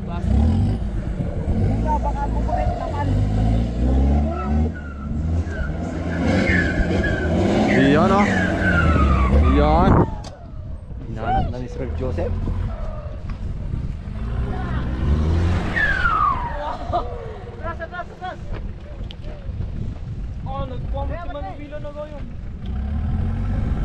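An engine roars and revs loudly.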